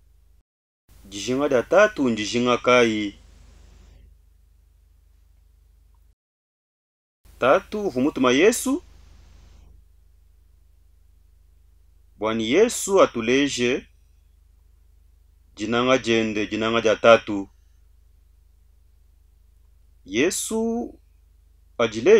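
A middle-aged man speaks slowly and earnestly into a close microphone, with pauses between phrases.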